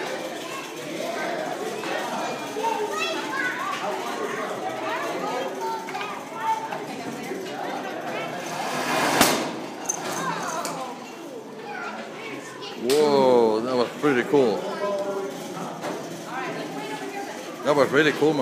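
Young children chatter and shout excitedly in an echoing room.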